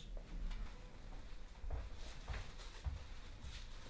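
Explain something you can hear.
Footsteps walk across a floor.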